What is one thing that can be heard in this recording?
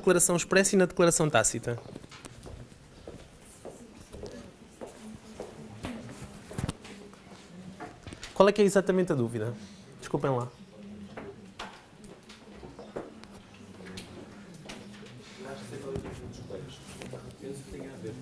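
A man speaks clearly in a slightly echoing room.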